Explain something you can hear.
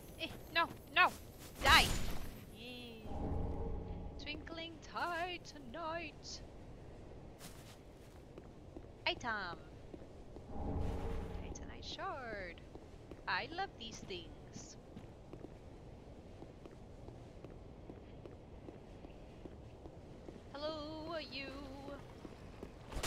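A young woman talks into a close microphone with animation.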